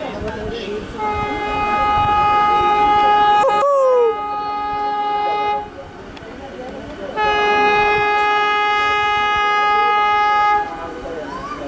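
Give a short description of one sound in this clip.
A semi-high-speed electric train sounds two long blasts of its horn as it approaches.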